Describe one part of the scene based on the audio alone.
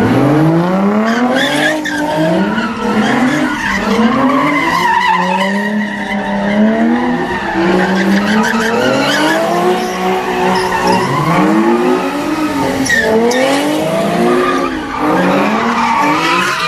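A car engine revs hard, rising and falling again and again.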